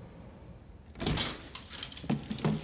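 A door swings open.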